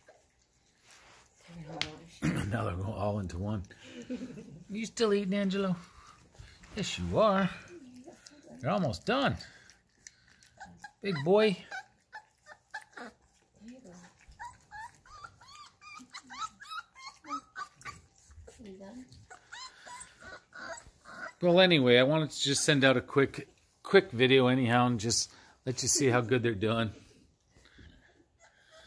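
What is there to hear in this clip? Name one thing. Puppies lap and slurp food from metal bowls.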